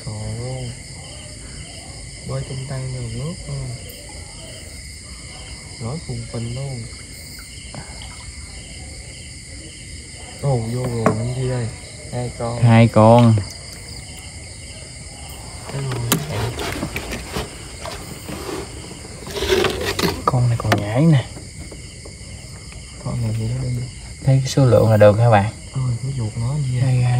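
A young man talks casually nearby, in short bursts with pauses.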